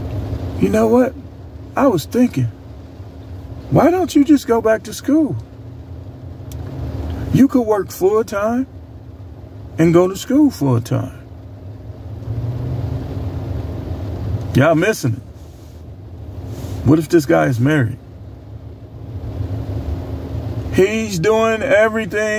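A middle-aged man talks with animation close to a phone microphone, in bursts with pauses.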